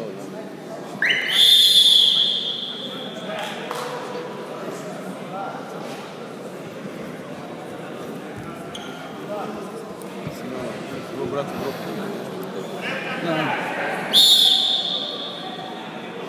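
A referee blows a whistle sharply in an echoing hall.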